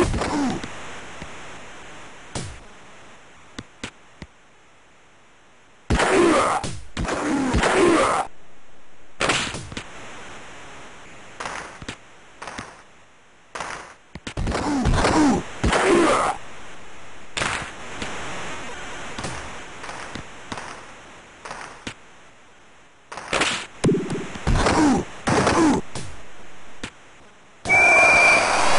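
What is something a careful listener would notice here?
A puck clacks off hockey sticks and boards.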